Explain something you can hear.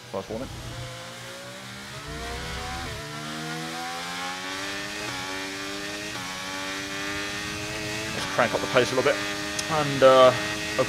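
A racing car engine whines, rising in pitch and dropping briefly at each gear change.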